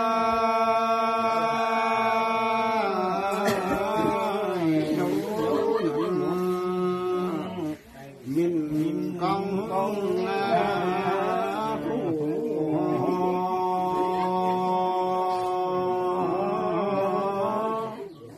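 An elderly man chants in a long, steady, drawn-out voice close by.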